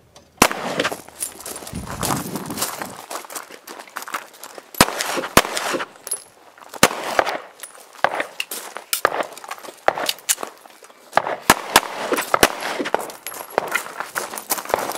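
Pistol shots crack sharply outdoors, one after another, with a short echo.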